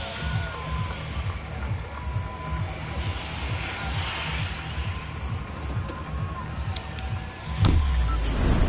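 A heavy engine hums with a steady throb.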